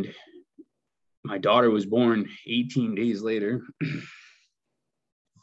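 A man speaks calmly into a nearby microphone, heard as if over an online call.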